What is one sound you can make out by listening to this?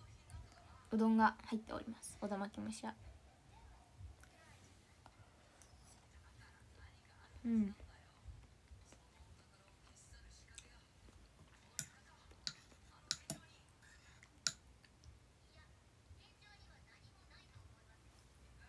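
A young woman chews and eats close up.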